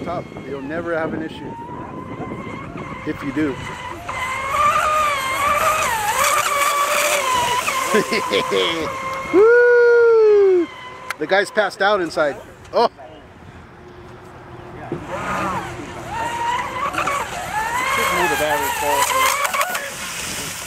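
A small model boat's motor whines at high pitch, rising and falling as the boat races across the water.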